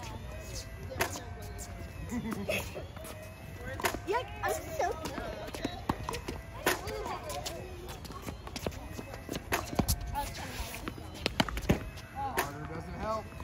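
Tennis rackets strike balls with sharp pops.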